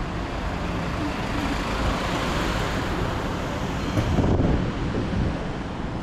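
A truck's engine rumbles close by.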